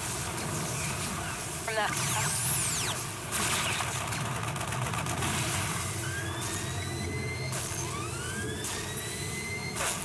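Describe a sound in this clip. Sci-fi weapons fire in short bursts.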